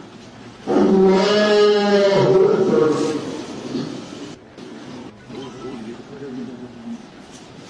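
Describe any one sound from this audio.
A man chants a prayer aloud in a long, drawn-out voice.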